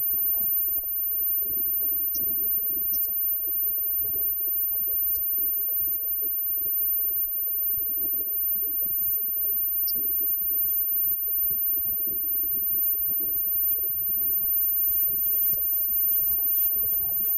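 Electric guitars play through amplifiers.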